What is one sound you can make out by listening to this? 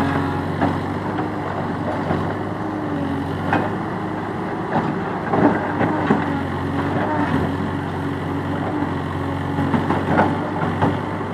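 Rocks clatter and knock as a digger bucket scrapes and drops them.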